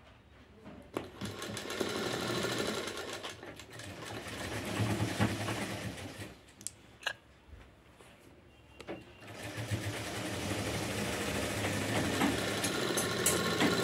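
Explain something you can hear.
A sewing machine runs in bursts, whirring and clattering.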